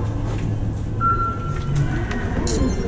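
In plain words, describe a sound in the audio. A start beep sounds over loudspeakers.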